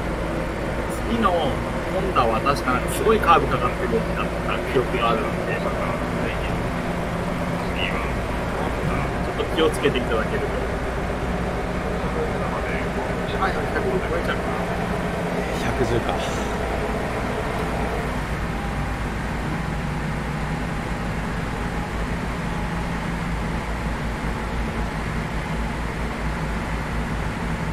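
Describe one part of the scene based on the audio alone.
An electric train motor hums steadily as the train runs along the track.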